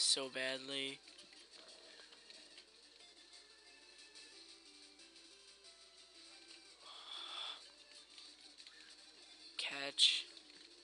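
Electronic game music plays quietly.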